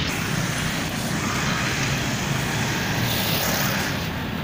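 A car engine hums as it drives past.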